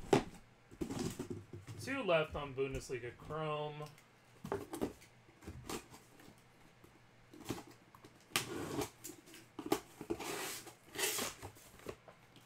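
Plastic-wrapped boxes crinkle and knock as they are handled.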